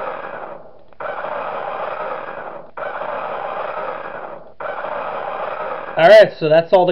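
A loud, harsh, distorted scream blares from a game in long bursts.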